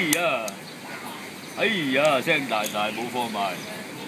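Wooden game pieces click on a board.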